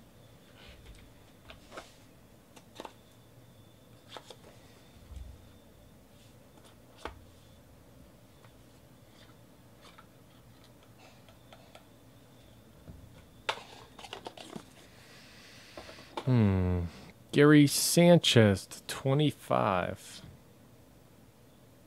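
Cardboard packs and cards rustle and tap as hands handle them.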